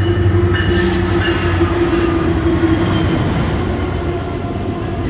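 Diesel locomotives rumble and drone loudly close by.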